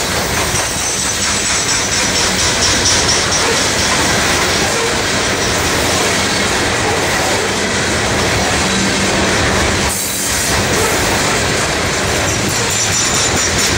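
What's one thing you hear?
Freight cars rumble and clatter loudly along the track close by.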